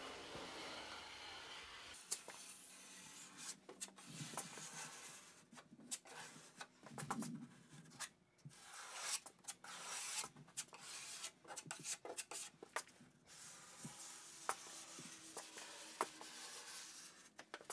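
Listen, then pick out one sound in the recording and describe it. A blade scrapes along a plaster seam in short, rough strokes.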